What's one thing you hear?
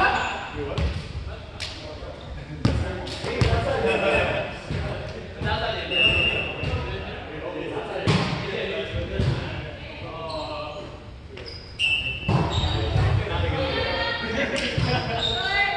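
Young men call out and talk across a large echoing gym.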